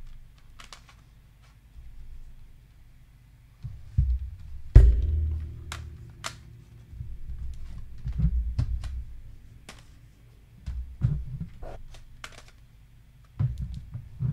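Plastic disc cases click and clack as they are handled.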